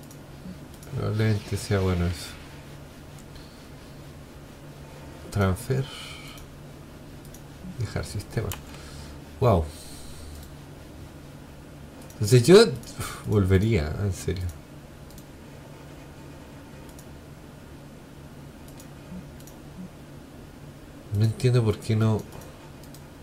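A young man talks calmly into a close microphone, in short bursts.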